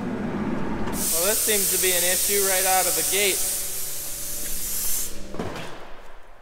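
Water hisses from a hose onto the floor.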